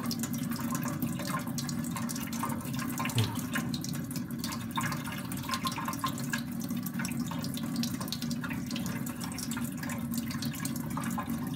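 A blade scrapes against a wet whetstone.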